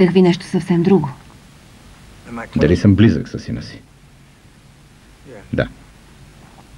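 A man speaks quietly and wearily up close.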